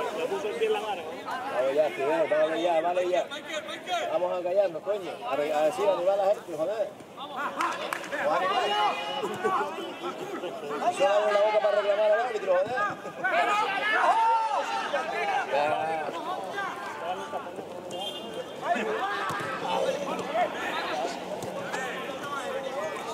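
Men shout to each other across an open field.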